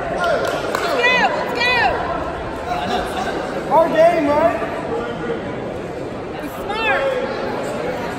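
Shoes squeak sharply on a mat.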